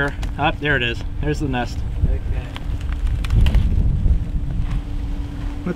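A papery nest crackles and rustles as it is torn away by hand.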